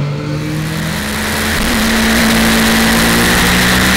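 Wind rushes loudly past a moving motorcycle.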